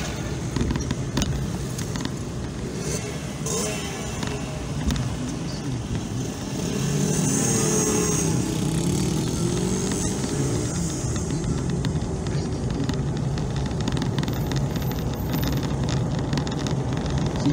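A car engine hums steadily from inside the car while driving.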